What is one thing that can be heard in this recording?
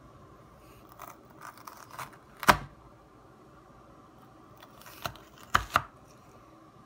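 A knife cuts through raw potato with crisp knocks on a cutting board.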